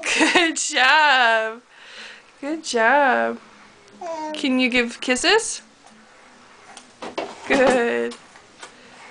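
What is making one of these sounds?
A little girl talks in a high, lively voice close by.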